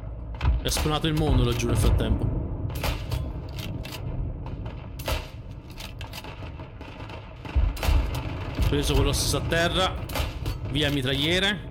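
A rifle bolt clicks and clacks as it is worked.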